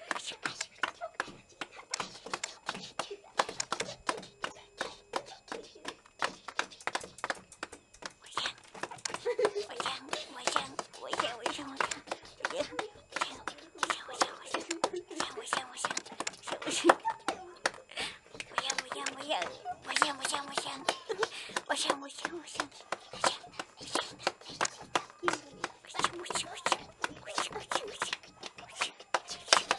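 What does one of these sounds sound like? Guinea pigs squeak and chirp close by.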